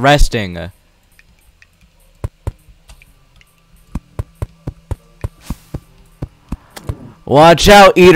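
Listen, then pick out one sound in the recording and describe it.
Short game sound effects tap and click in quick bursts.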